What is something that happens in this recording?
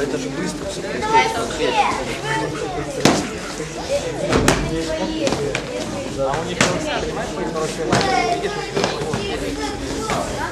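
Children shout and call out excitedly in an echoing hall.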